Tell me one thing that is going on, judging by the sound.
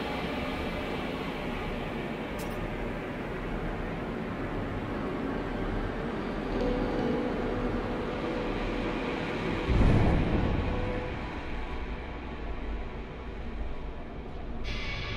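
A spacecraft engine hums and roars steadily.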